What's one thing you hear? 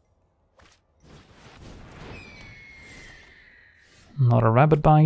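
A game sound effect whooshes and chimes as a card is played.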